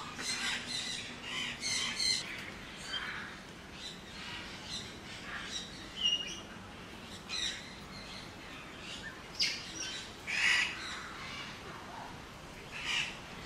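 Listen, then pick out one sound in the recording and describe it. A cockatoo screeches and squawks repeatedly nearby.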